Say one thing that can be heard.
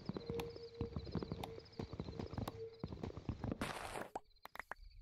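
An axe chops wood with quick repeated knocks.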